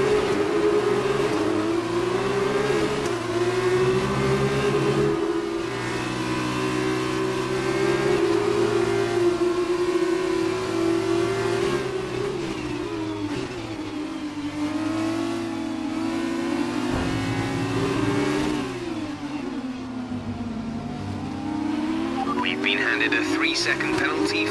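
A racing car engine whines loudly, rising and falling in pitch as the car speeds up and slows down.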